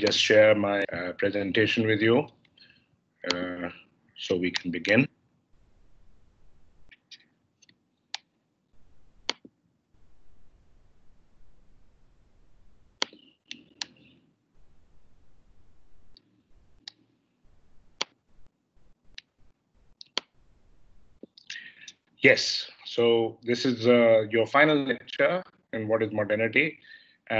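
An elderly man speaks calmly through an online call, with pauses.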